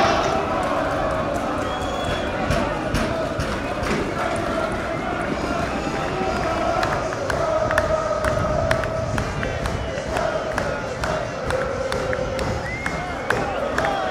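A large crowd of fans chants and cheers loudly.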